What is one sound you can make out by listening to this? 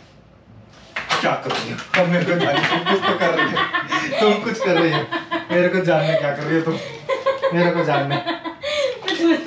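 A man speaks loudly and demandingly, close by.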